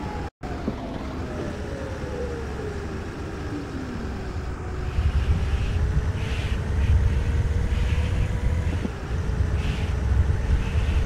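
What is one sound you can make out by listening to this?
A bus engine hums steadily as the bus drives along a highway.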